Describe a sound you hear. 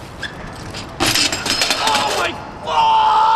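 A bike and rider crash hard onto concrete.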